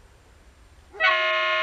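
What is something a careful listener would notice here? A diesel locomotive sounds its horn.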